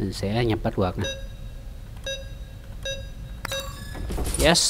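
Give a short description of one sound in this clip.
Electronic beeps sound as keypad buttons are pressed.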